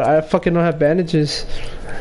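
A pickaxe swings and strikes.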